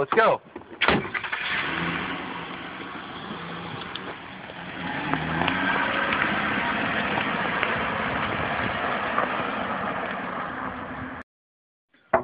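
A car drives off with a steady rumble of engine and tyres.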